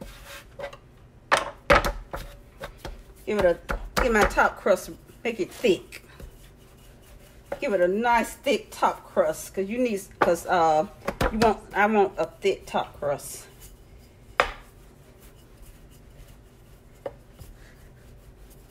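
Hands pat and slap soft dough on a wooden board.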